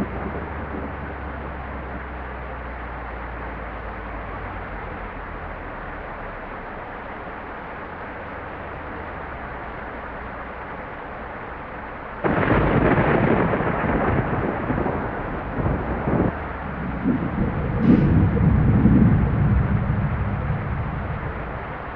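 Rain patters steadily on a bus windscreen.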